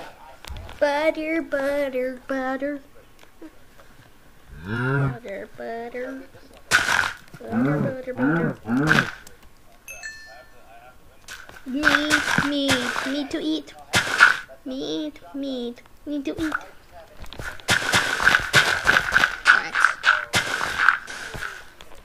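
A boy talks with animation into a microphone, close up.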